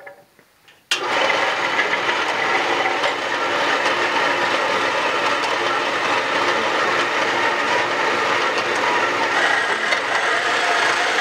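A band saw runs and cuts through a metal rod with a steady whine.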